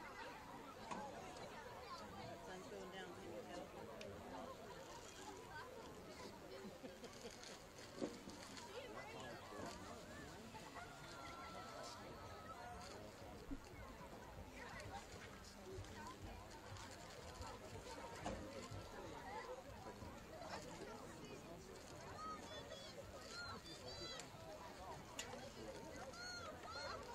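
A crowd of spectators chatters in the open air.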